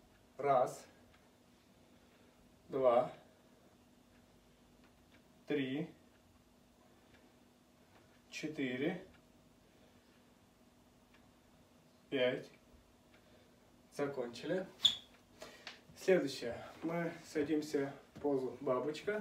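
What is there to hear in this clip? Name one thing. A young man speaks calmly close by, in short phrases with pauses, then more steadily.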